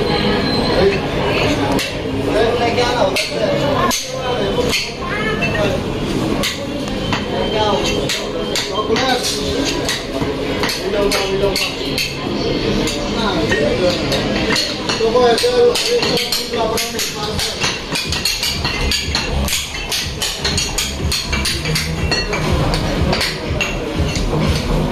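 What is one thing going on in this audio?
Metal spatulas clack and scrape against a cold metal plate.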